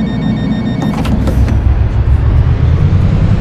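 A bus engine revs up and rumbles louder.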